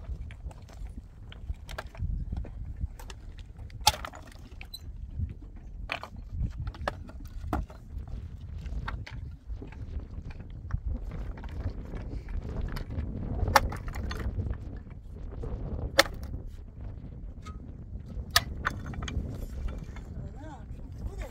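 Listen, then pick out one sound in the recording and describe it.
A pickaxe strikes stony ground with sharp knocks.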